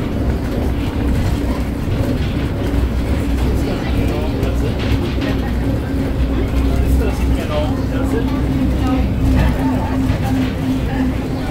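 A steady electric whine rises and falls from the train's motor.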